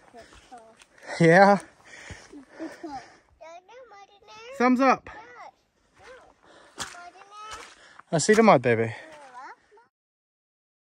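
A young child chatters excitedly close by.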